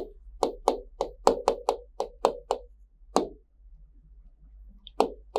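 A marker taps and knocks sharply against a board.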